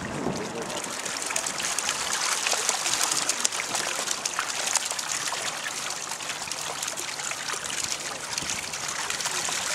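Fish splash and thrash in a tub of water.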